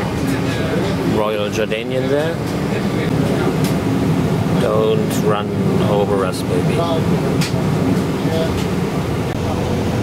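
A jet airliner's engines hum steadily as it taxis nearby.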